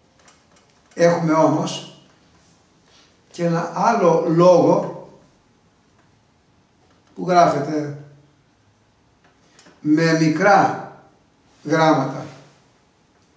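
An elderly man speaks calmly in short phrases, close to a microphone.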